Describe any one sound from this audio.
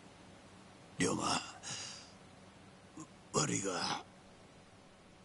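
An adult man speaks weakly and haltingly, close by.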